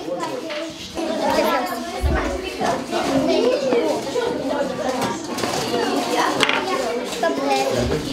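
A chess piece taps on a wooden board.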